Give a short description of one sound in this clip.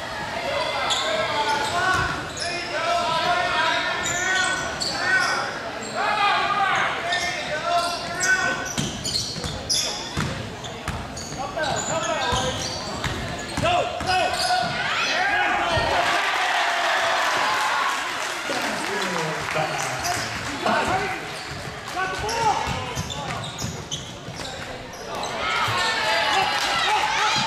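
A crowd of spectators talks and cheers loudly in a large echoing gym.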